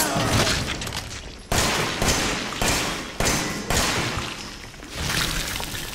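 Gunshots fire in quick succession and echo.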